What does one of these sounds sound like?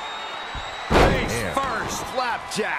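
A wrestler slams heavily onto a table in a wrestling ring.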